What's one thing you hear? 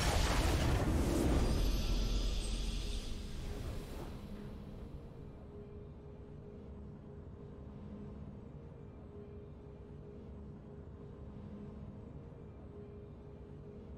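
A triumphant game fanfare swells and then fades to quiet.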